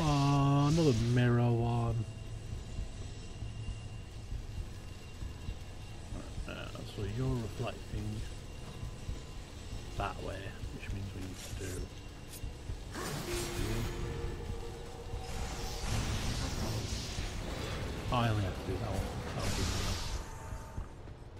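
Crackling energy beams zap and hum.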